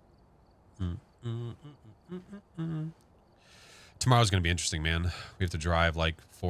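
A young man talks into a close microphone, calmly at first and then with animation.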